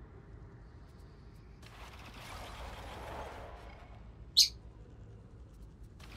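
Keys on a computer keyboard click.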